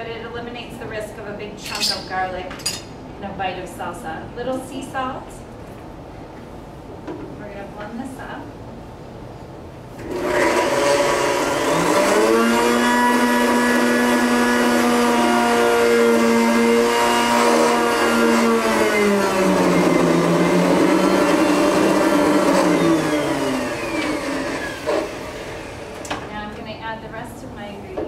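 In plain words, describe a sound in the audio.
A woman talks calmly into a microphone.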